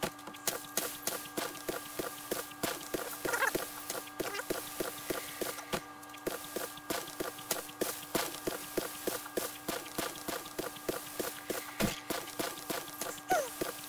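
A shovel digs repeatedly into dirt with dull thuds.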